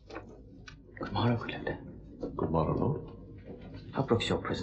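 A younger man answers calmly.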